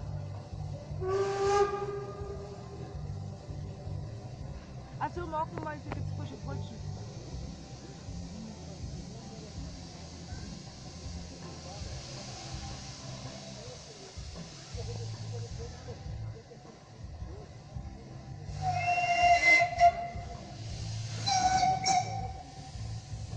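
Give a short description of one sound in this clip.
A steam locomotive's whistle blows loudly several times.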